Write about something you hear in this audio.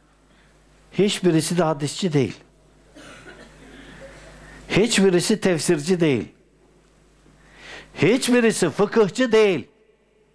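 An elderly man sings short melodic phrases close to a microphone.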